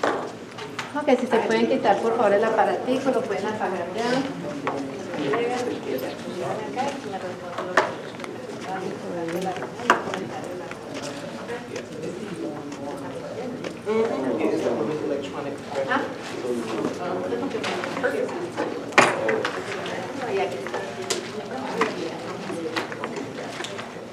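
A man speaks to an audience through a microphone in a large room.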